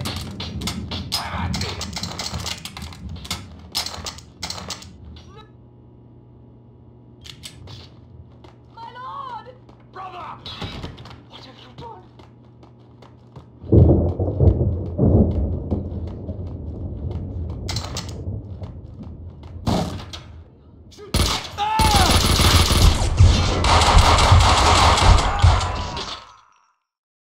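Gunshots fire in rapid bursts, echoing off hard walls.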